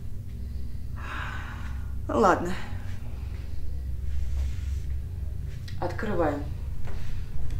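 A young woman whimpers and sniffles.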